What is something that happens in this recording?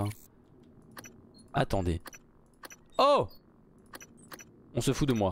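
Short game interface clicks tick now and then.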